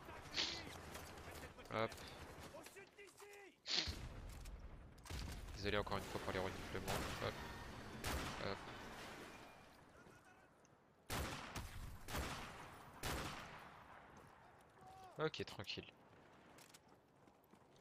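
A rifle bolt clacks as the weapon is reloaded.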